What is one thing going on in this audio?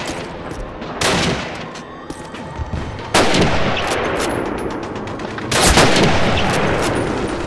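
A rifle fires loud shots that echo and fade.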